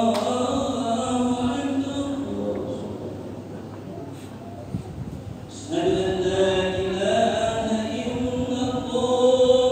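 A man chants in a long, melodic voice that echoes around a large hall.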